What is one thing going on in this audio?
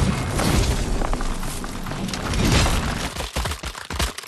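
Crackling energy bursts and rumbles.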